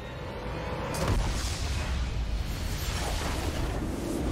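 A large structure explodes with a deep, rumbling boom.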